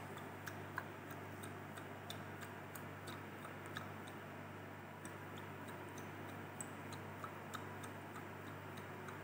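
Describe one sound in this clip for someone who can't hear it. Small grains rattle and tick against the inside of a glass tube as it is shaken.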